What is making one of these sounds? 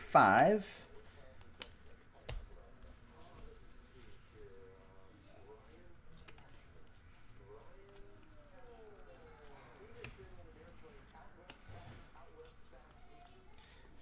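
Trading cards rustle and slide as they are flipped through.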